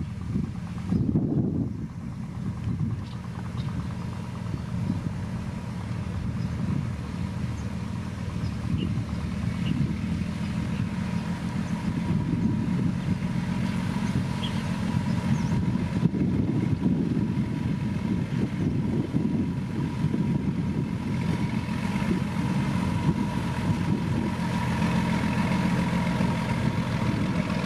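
A truck engine rumbles steadily nearby.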